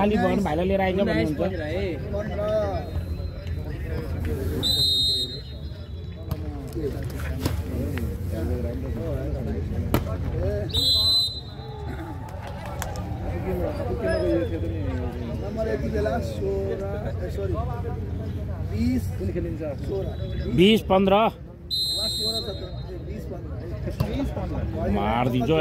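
Men shout and chatter nearby outdoors.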